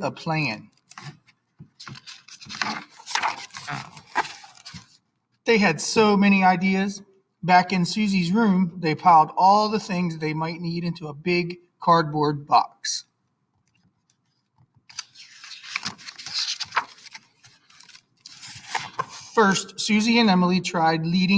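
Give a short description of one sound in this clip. A book page is turned with a soft paper rustle.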